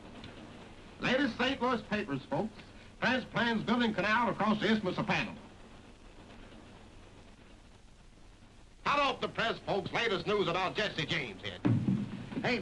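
A man calls out loudly in a carriage.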